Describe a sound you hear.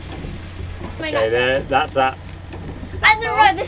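A young woman talks and laughs nearby.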